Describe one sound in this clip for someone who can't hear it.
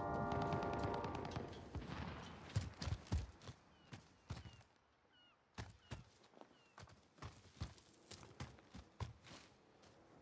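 Quick footsteps thud and crunch on hard ground.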